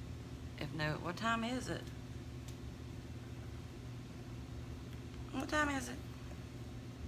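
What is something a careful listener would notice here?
A middle-aged woman speaks close to the microphone in short, casual phrases.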